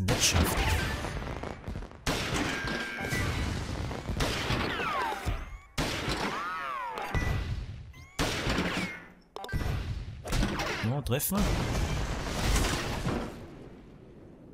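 Explosions burst again and again in quick bursts.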